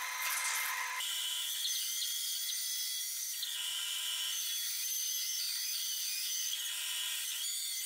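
A band saw hums steadily as it cuts wood.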